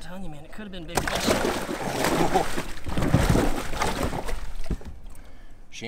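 Water splashes and gushes out of a bag.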